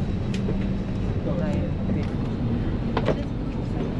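A suitcase is lifted and thumps into an overhead bin.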